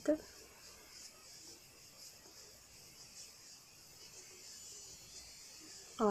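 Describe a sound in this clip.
A sponge dabs softly against skin.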